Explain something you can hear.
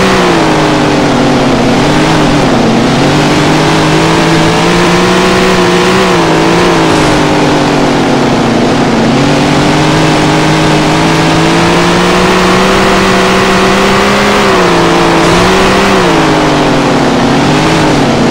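Tyres skid and rumble over loose dirt.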